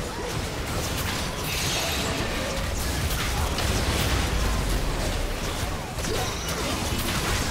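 Game spell effects crackle and burst in a busy fight.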